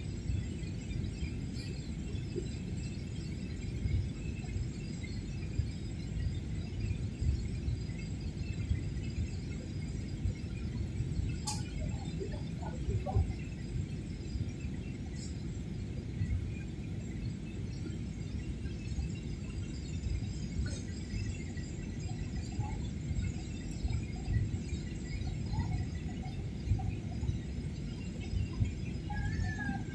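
A jet airliner's engines roar steadily inside the cabin.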